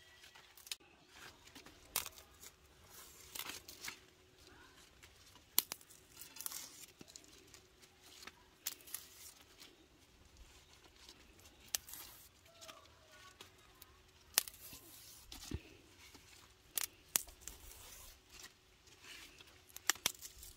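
Vegetable stems snap crisply as they are broken off.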